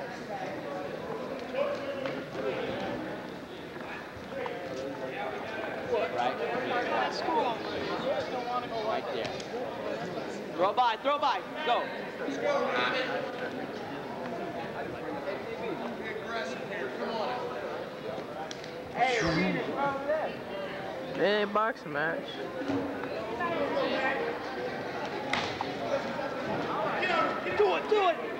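A crowd of men and women chatters steadily in a large echoing hall.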